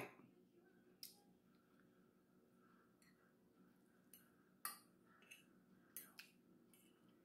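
A woman chews food with soft, wet mouth sounds.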